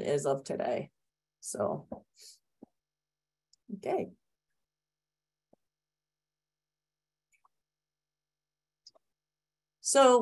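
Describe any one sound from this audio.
A woman speaks calmly in short bursts, heard through an online call.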